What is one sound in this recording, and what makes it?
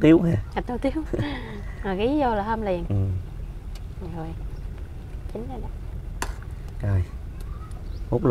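Leafy soup sloshes as a ladle stirs it.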